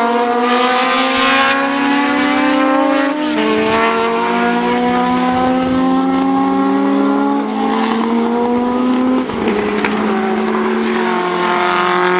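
A racing car speeds past close by.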